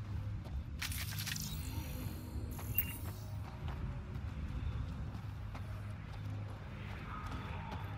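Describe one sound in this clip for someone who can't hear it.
Footsteps crunch on sand and stone.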